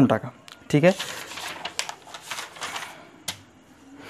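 Paper pages rustle as a hand turns them.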